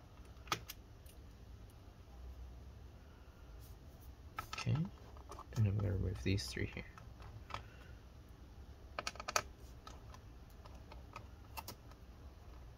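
A screwdriver clicks and scrapes against a metal laptop case.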